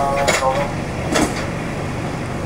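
A truck drives past close by.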